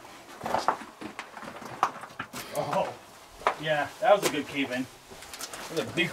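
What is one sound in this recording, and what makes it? Footsteps crunch on loose rubble.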